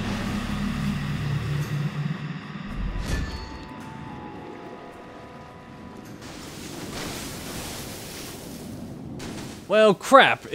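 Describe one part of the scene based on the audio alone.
Waves crash against rocks along a shore.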